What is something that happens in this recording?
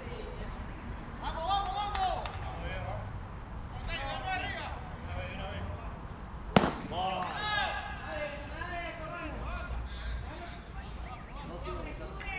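Young men shout and cheer across an open field.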